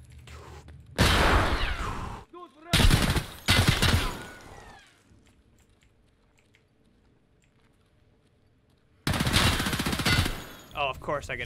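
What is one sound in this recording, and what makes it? Loud rifle shots ring out and echo.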